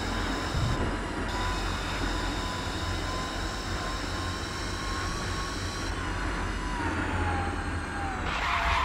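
A sports car engine roars at high speed, its pitch falling as it slows.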